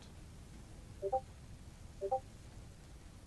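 A short electronic chime sounds twice as a game menu opens.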